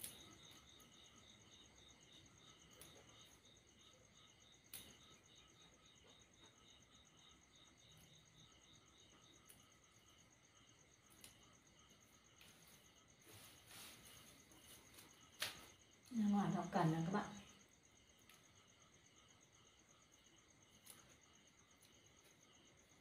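Leafy greens rustle and snap as they are picked over by hand.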